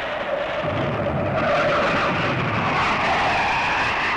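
A plane drones overhead.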